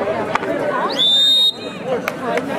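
A referee blows a short whistle.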